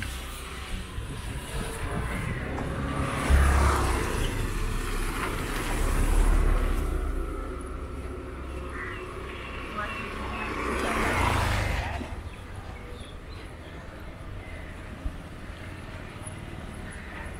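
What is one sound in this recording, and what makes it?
Outdoors, wind buffets the microphone.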